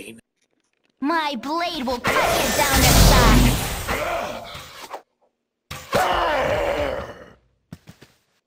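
A game battle plays out with clashing weapons.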